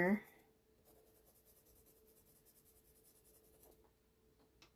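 A pencil scratches rapidly across paper.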